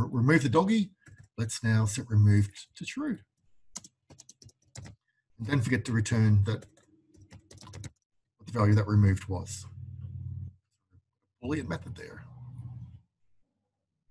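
A man speaks calmly into a close microphone, explaining at a steady pace.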